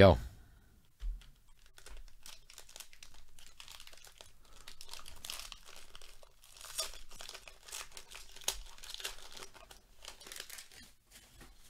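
A foil wrapper crinkles as it is torn open.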